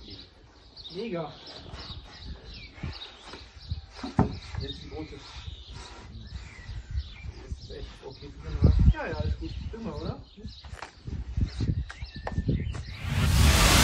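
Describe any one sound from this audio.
Men talk quietly outdoors in the background.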